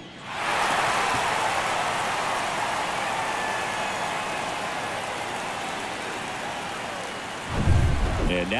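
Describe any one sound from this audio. A large crowd cheers and roars loudly, slowly dying down.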